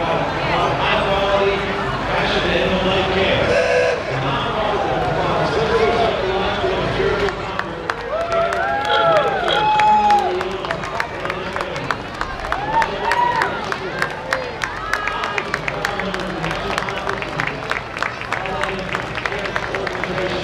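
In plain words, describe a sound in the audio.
A crowd of spectators chatters and cheers along an outdoor street.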